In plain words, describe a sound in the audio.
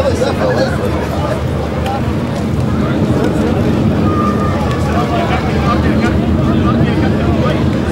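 A man speaks calmly up close to a fighter.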